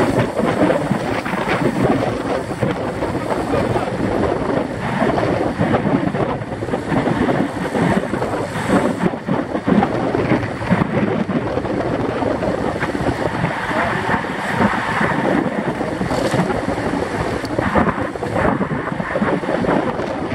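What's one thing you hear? Wind buffets loudly, as if rushing past at speed.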